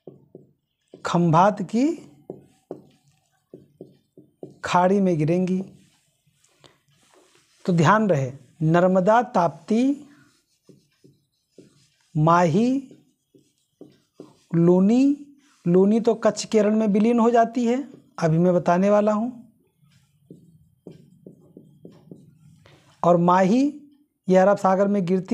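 A man speaks calmly and clearly, close by, as if explaining.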